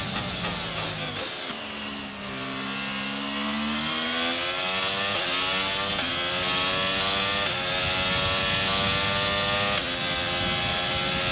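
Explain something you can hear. A racing car engine screams loudly, shifting up through the gears as it accelerates.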